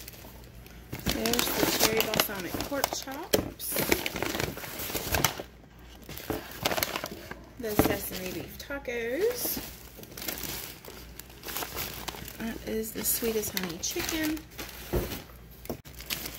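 Paper packaging rustles and crinkles close by.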